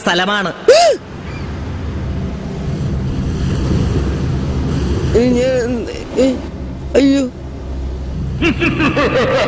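Rough sea waves crash and roar.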